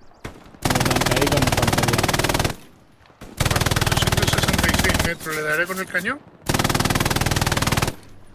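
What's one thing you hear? A heavy machine gun fires long, rapid bursts.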